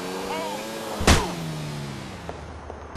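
A motorbike crashes with a loud thud.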